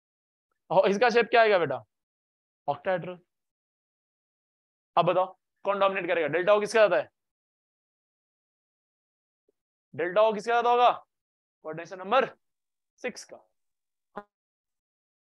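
A young man speaks with animation through a microphone, in short bursts with pauses.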